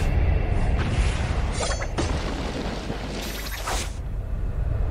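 Game spell effects whoosh and crackle in bursts.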